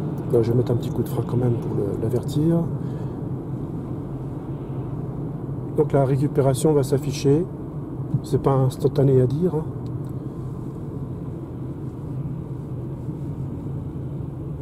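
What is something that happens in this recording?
Tyres hum steadily on the road from inside a moving car.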